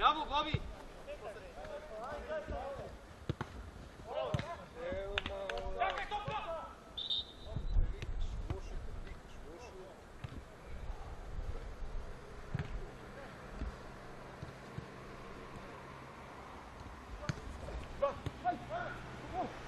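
Men shout to each other across an open playing field.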